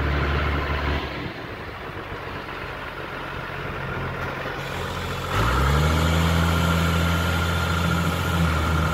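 A tractor's diesel engine rumbles nearby and revs up loudly.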